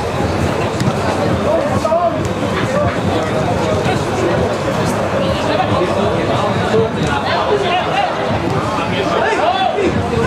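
A football thuds as a player kicks it.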